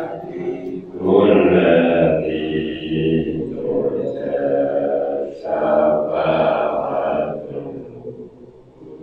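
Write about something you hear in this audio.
A middle-aged man talks calmly into a microphone.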